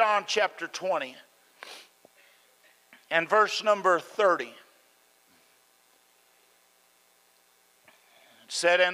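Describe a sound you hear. An older man preaches into a microphone in bursts, with pauses between phrases.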